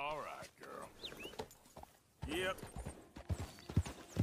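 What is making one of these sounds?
A horse's hooves thud as it trots over grass.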